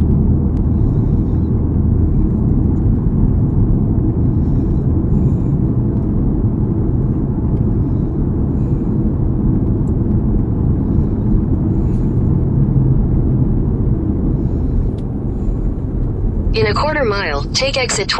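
Trucks roar past close by on a busy road.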